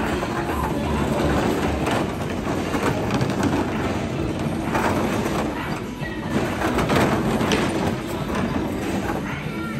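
Small electric bumper cars whir as they roll around.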